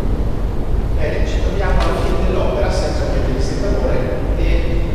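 A man speaks calmly into a microphone, heard over loudspeakers in a large room.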